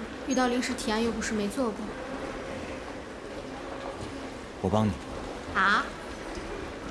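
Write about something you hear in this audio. A young woman speaks in a questioning, troubled tone close by.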